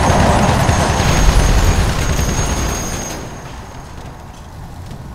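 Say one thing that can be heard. An explosion booms and fire crackles.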